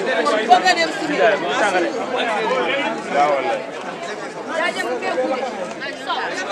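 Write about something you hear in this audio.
Several men talk over one another nearby, outdoors.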